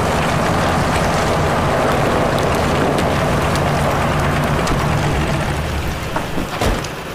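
A truck engine rumbles loudly nearby.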